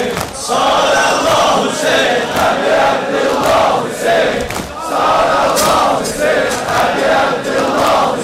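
A large crowd of men chants loudly in unison outdoors, in a rhythmic pattern.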